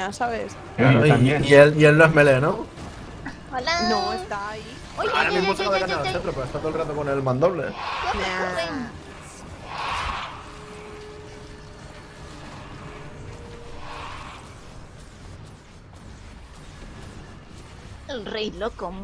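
Magic spells whoosh and burst in a fight.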